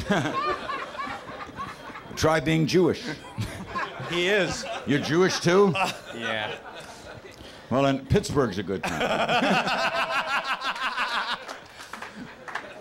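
A middle-aged man talks animatedly into a microphone.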